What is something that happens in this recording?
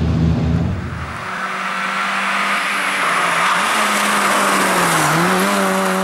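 A rally car engine roars loudly as the car races closer.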